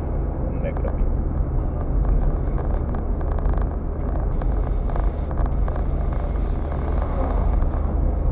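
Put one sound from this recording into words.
Tyres roll and rumble on a wet road.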